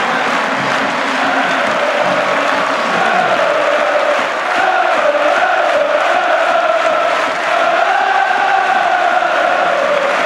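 A large crowd sings a chant together.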